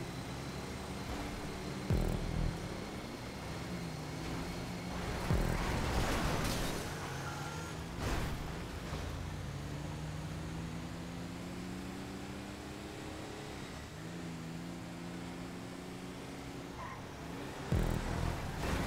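An off-road SUV engine roars at full throttle, shifting up through gears.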